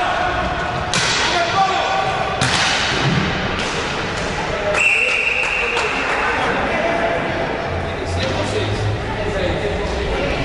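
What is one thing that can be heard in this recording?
Hockey sticks clack against a ball and against each other.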